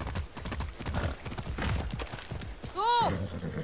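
Horse hooves thud quickly over soft ground.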